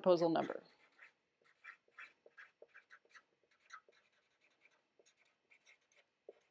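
A marker squeaks and scratches across a whiteboard.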